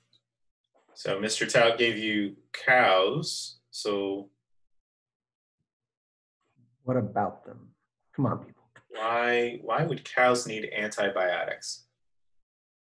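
A man speaks calmly into a microphone, heard close up.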